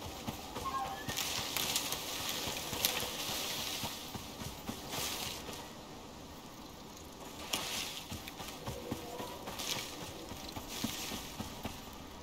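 Footsteps rustle through tall grass and leafy bushes.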